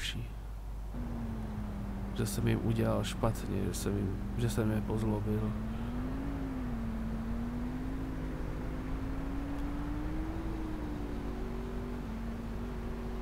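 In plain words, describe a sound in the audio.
A truck engine hums steadily and slowly rises in pitch.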